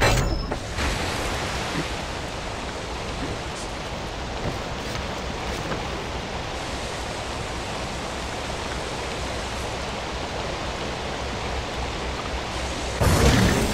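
Water pours steadily down a stone wall.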